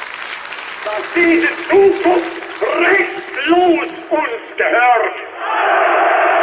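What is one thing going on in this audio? A man makes a forceful speech heard through a loudspeaker.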